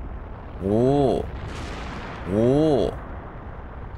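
A blast of fire roars up from a volcano.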